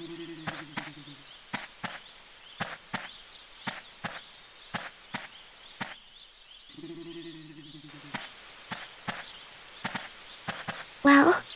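Footsteps shuffle rhythmically on the ground.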